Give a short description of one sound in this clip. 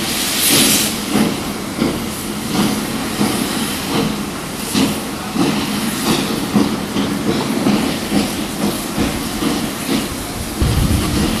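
A steam locomotive chuffs in a steady rhythm.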